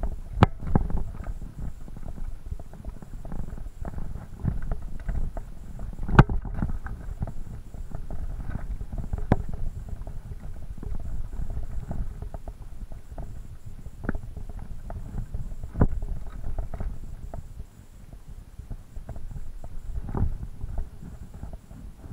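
A mountain bike's frame and chain rattle over bumps.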